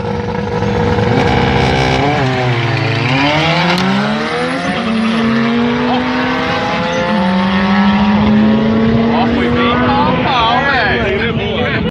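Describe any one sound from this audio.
Distant race cars accelerate with rising, whining engine notes.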